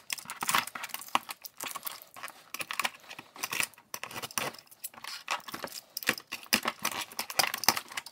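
Scissors snip through plastic ties.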